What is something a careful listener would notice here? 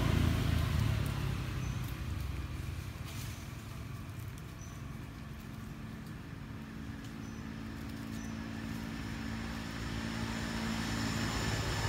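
Dry leaves rustle softly as a monkey picks through them on the ground.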